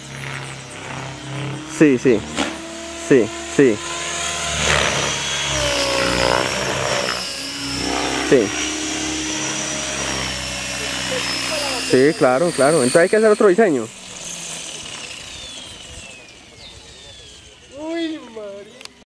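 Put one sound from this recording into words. A small model helicopter whirs and whines overhead outdoors.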